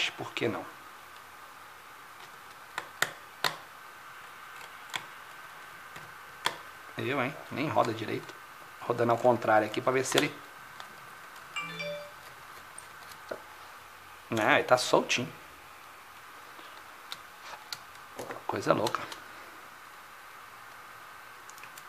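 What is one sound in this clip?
Small tools click and tap against plastic and metal parts.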